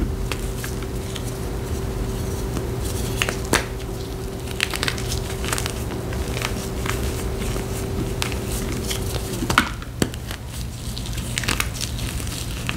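Powder rustles and crunches as gloved fingers rub through it.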